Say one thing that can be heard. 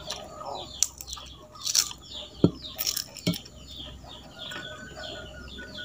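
A man chews food.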